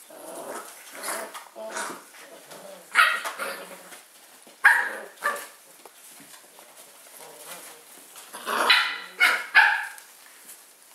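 Puppies yelp and bark sharply in short bursts.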